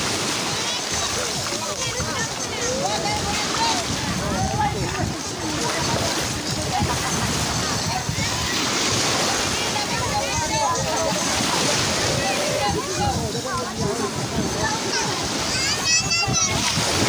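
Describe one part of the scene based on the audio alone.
Young people chatter and call out excitedly outdoors.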